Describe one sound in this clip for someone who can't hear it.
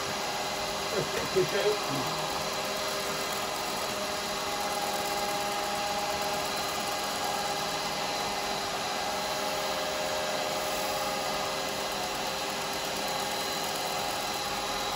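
A wood lathe hums steadily as it spins.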